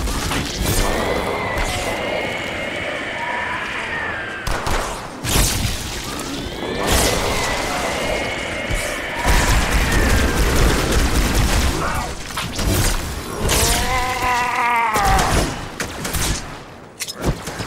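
An energy sword swings with a crackling whoosh.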